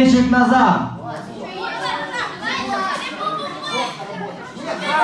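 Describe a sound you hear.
Children chatter in the background.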